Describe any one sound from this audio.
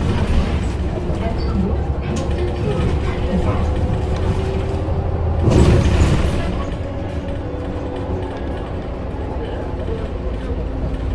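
A bus engine rumbles steadily from inside as the bus drives along.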